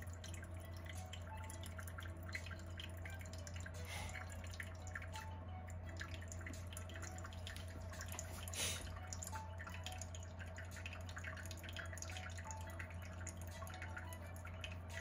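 Liquid trickles and drips steadily into a glass jug.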